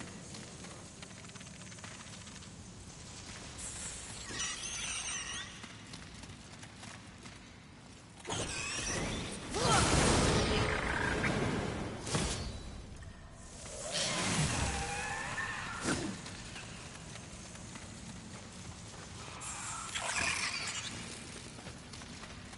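Footsteps run across rocky ground.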